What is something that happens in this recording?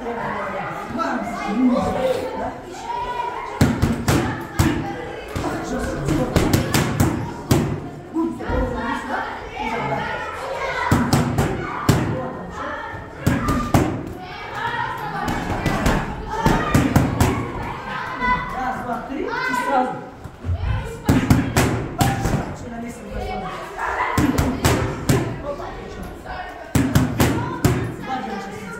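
Boxing gloves thud sharply against padded mitts in quick bursts.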